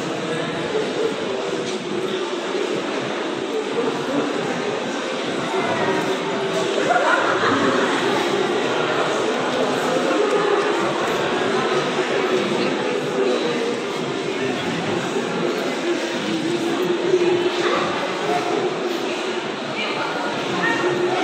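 A large group of women sings together in an echoing hall.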